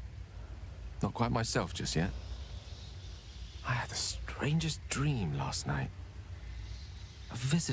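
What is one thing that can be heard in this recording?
A man speaks calmly and closely, with a deep voice.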